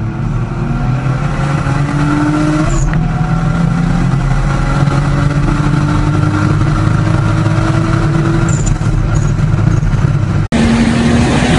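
An engine roars at full throttle, heard from inside a speeding car.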